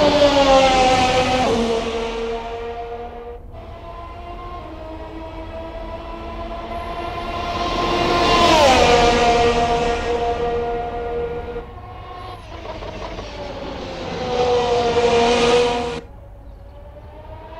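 A racing car engine screams past at high speed, its pitch dropping as it passes.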